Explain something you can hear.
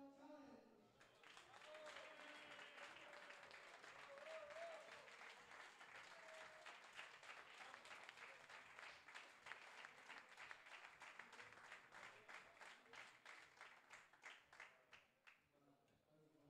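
An audience claps and cheers in a hall.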